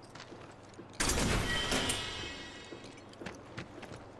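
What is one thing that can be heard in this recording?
A metal box bursts open with a loud crash.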